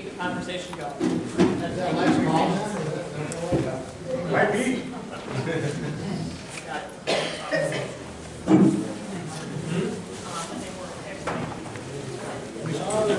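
Several people chat nearby.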